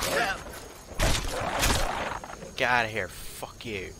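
An axe strikes with heavy thuds.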